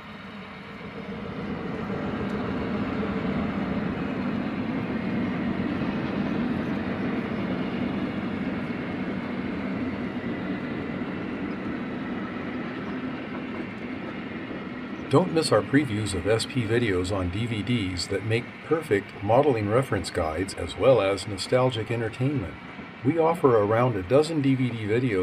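A model train rumbles steadily along its track.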